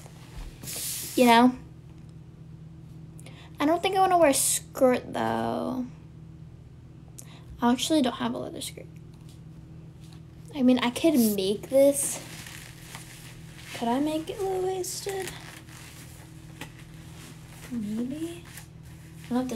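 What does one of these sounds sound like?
A young woman speaks softly and playfully close by, in short bursts.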